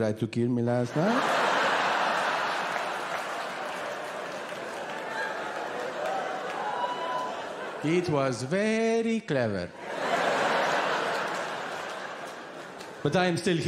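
An audience laughs loudly.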